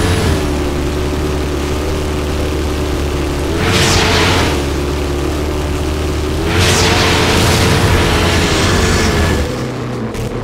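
Tyres crunch and skid over gravel.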